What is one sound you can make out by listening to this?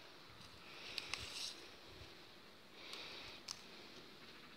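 Fruit snaps off a twig with small clicks.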